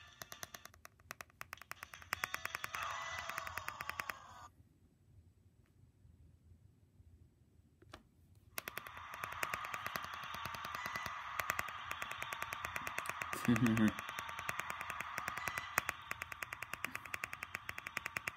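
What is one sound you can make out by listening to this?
Game music plays from a small handheld speaker.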